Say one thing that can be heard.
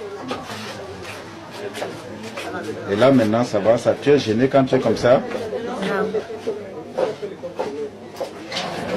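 A boy speaks quietly into a microphone, close by.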